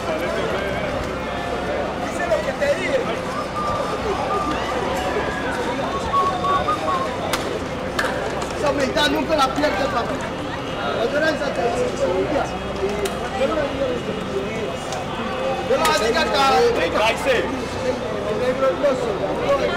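A crowd of men chatter and call out nearby, outdoors.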